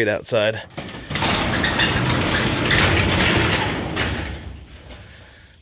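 A garage door rattles and rumbles as it rolls open.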